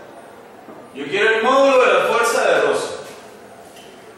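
A young man speaks aloud to a room, his voice echoing slightly.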